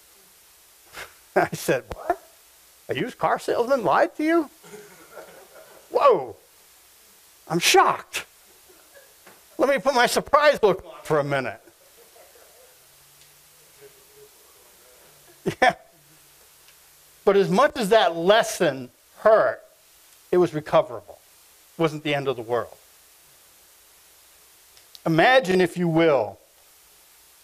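A middle-aged man speaks calmly through a microphone, in short bursts with pauses, in an echoing room.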